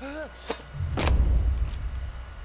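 A heavy thud lands on the ground.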